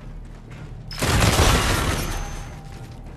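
A heavy explosion booms close by and rumbles away.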